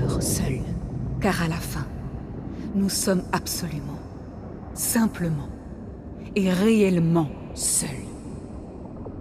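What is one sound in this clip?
A woman speaks weakly and slowly, close by.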